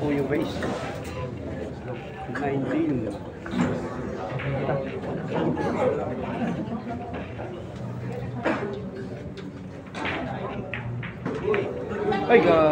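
A crowd of spectators murmurs and chats nearby.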